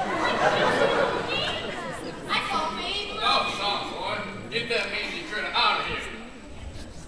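Young actors sing together in a large echoing hall.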